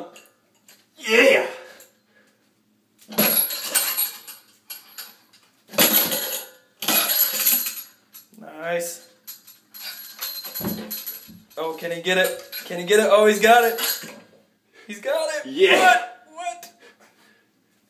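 A young man shouts and groans with effort close by.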